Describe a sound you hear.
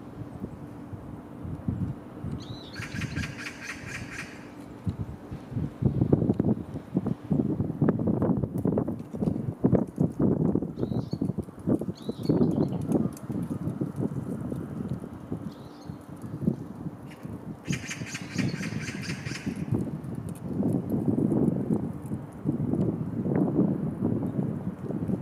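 Pigeons peck and rustle softly in dry grass.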